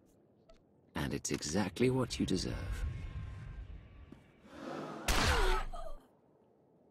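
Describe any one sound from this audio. A blaster fires a sharp shot.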